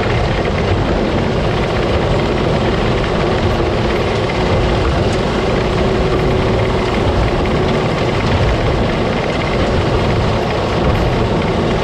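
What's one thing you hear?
A harvesting machine roars loudly and steadily up close.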